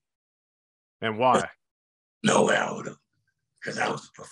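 A man speaks calmly and cheerfully into a close microphone.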